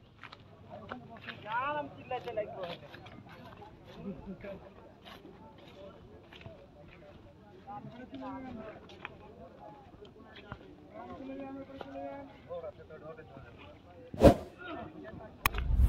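Several people talk and call out at a distance outdoors.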